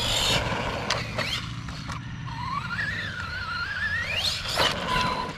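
Tyres crunch and skid on loose dirt.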